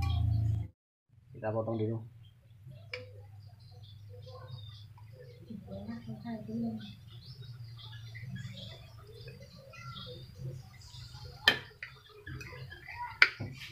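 A knife scrapes against a plate.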